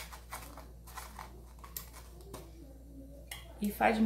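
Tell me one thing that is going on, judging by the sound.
A small cake is picked up and set down on a plate with a soft tap.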